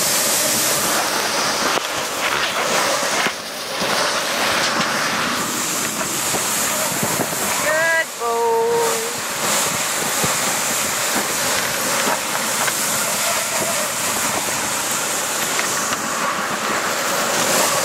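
Strong wind roars and buffets the microphone outdoors.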